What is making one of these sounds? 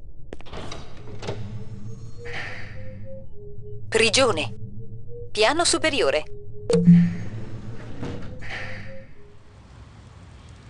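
Keypad buttons beep in short electronic tones.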